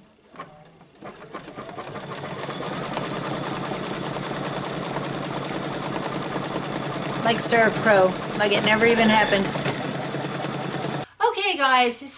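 An embroidery machine whirs and stitches rapidly.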